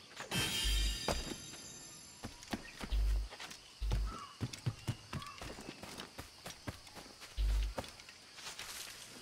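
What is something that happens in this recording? Footsteps patter quickly over rough ground.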